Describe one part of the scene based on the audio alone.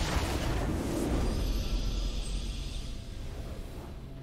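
A triumphant fanfare swells and rings out.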